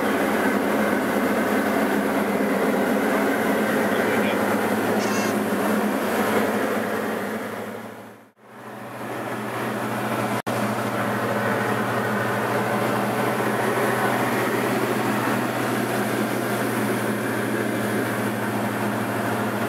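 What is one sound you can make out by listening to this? The engine of a light single-engine propeller plane drones in flight, heard from inside the cabin.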